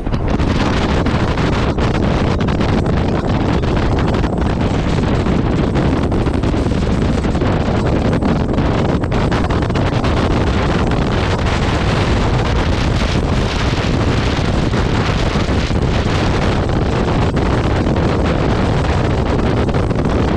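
A motorcycle engine hums steadily underneath.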